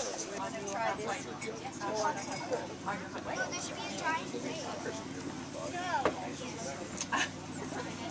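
Young children chatter and squeal nearby.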